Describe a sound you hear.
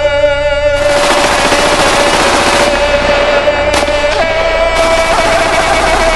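Music with a heavy beat booms from a loudspeaker stack.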